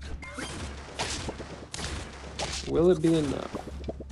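Cartoonish game sound effects pop and thump as small creatures trade blows.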